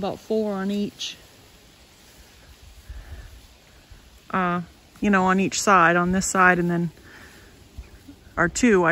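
A woman speaks close by with animation, in short bursts.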